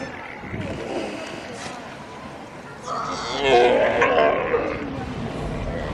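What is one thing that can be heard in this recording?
A sea lion bellows and barks hoarsely.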